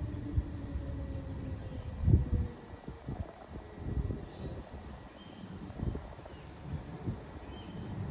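A train rumbles faintly in the distance as it slowly approaches.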